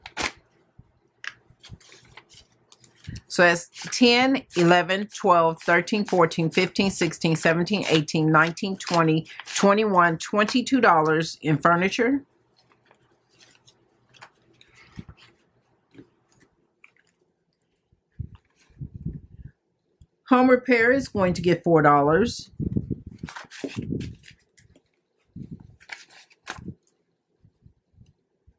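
Paper bills rustle and crinkle between hands.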